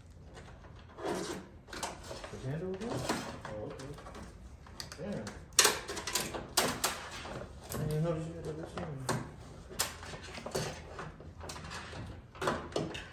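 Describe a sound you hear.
Plastic parts click and rattle as a car door panel is handled.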